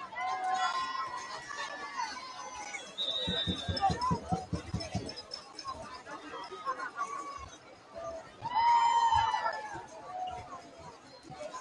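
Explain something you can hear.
Players on a sideline shout and call out.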